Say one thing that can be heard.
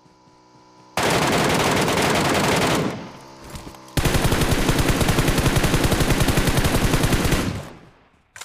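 An automatic rifle fires in rapid, loud bursts.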